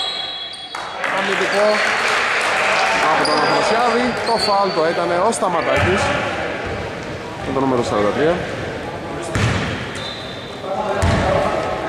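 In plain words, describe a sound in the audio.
Men call out to each other loudly across an echoing hall.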